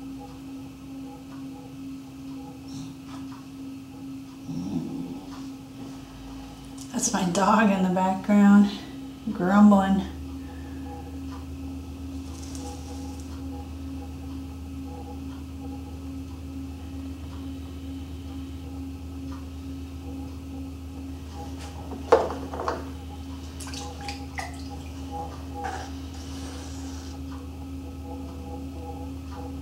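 Wet clay squishes softly under hands.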